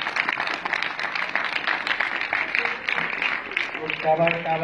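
A crowd of children claps rhythmically.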